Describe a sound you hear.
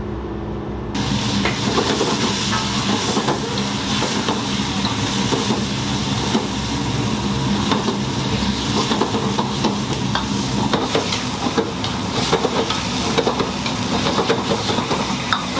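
A metal ladle scrapes and clanks in a wok.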